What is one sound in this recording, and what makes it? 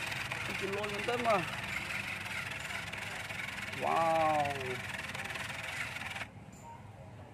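A toy car's small electric motor whirs steadily.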